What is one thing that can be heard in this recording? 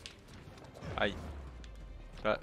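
Flames burst and roar in a fiery blast.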